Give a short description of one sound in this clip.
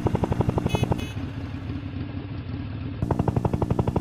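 A motorbike engine buzzes.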